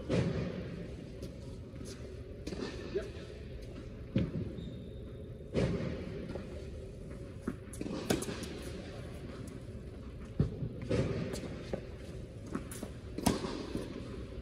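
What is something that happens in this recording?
A tennis racket strikes a ball with sharp pops in a large echoing hall.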